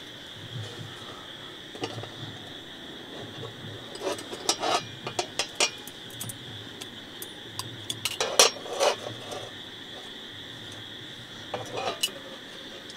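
Metal parts of a small stove click and clink as they are unfolded.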